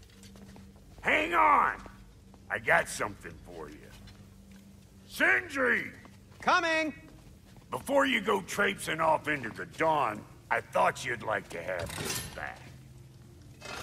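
A gruff man speaks with animation close by.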